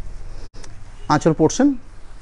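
A man speaks briefly and close by.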